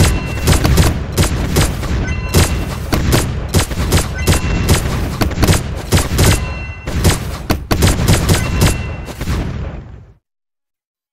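Rapid game gunfire and explosions crackle busily.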